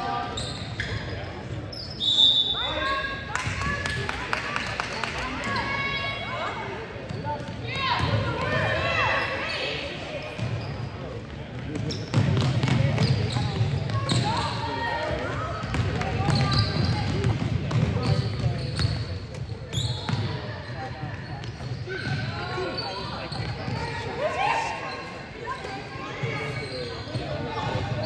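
Sneakers squeak sharply on a hardwood gym floor.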